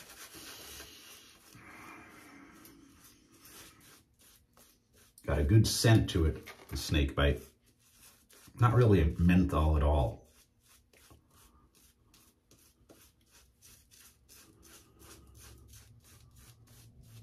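A shaving brush swishes lather against stubble.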